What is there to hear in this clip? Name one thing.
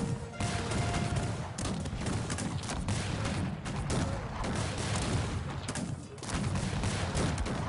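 Swords clash and clatter in a busy battle.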